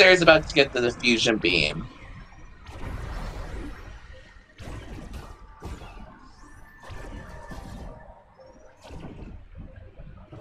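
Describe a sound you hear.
Laser blasts and electronic zaps from a video game ring out.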